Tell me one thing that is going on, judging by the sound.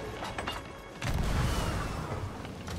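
A cannon fires with a heavy boom.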